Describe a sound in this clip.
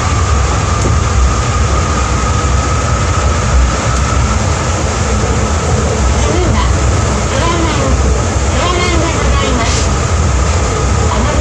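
A train rumbles steadily along the track with a humming motor.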